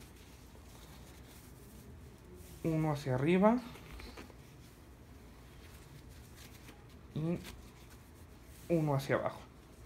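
An elastic bandage rustles softly as it is wrapped around a leg.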